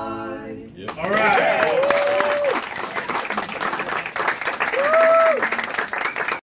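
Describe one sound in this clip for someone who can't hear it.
Audience members whoop and cheer loudly.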